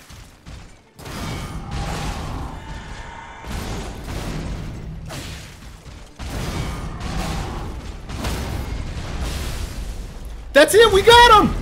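Heavy blows and blasts crash and boom in a fight.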